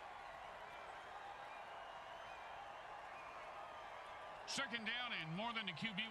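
A stadium crowd cheers with a steady roar.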